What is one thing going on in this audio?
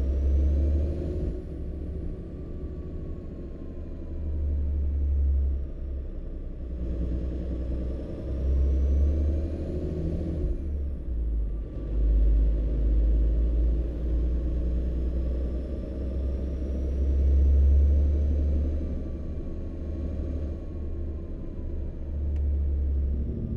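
A truck engine rumbles steadily, rising and falling with speed.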